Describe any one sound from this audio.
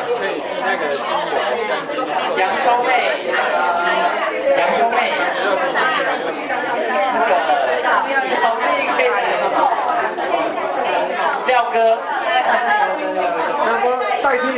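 A group of men and women chatter nearby.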